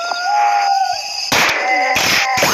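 A rifle fires a shot.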